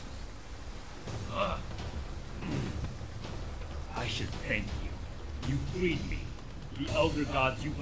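A man speaks in a deep, stern voice.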